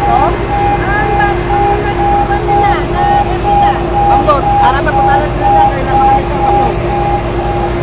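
A crowd of men shout and call out nearby outdoors.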